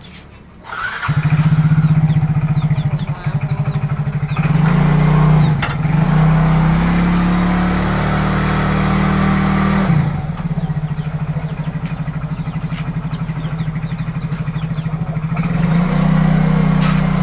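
A motorbike engine starts and idles with a steady putter.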